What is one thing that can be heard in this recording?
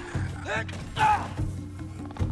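A heavy blade whooshes and strikes in a fight.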